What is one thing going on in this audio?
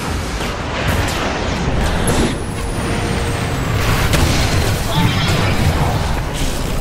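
Spells crackle and burst amid a busy battle.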